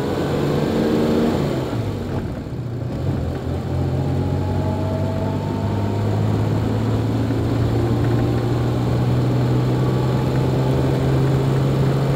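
A car engine hums steadily, rising and falling in pitch as it drives.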